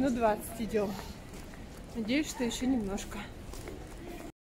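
A middle-aged woman speaks calmly, close to the microphone.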